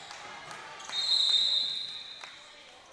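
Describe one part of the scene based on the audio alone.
A referee's whistle blows a sharp blast in an echoing gym.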